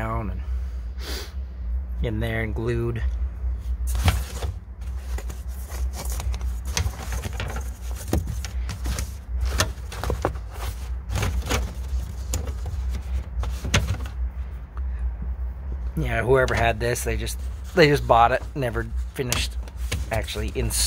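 Hard plastic knocks and clicks as a hand handles it.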